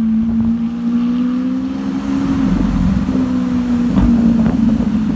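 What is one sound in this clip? A sports car engine revs up briefly.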